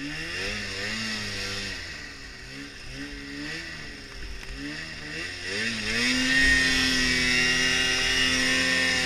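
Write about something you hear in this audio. Powder snow hisses under a snowmobile.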